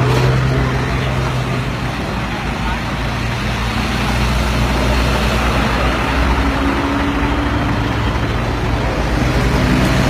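Truck engines idle and rumble nearby.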